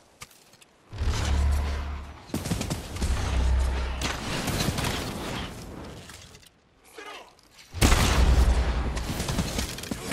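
Arrows whoosh through the air.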